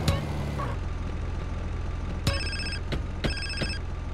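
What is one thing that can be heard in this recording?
A car door opens with a clunk.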